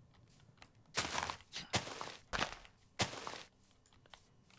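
Leafy blocks break with short crunching bursts.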